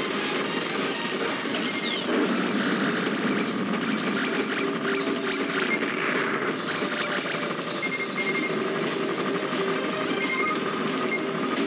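Rapid electronic shots crackle and chime without pause.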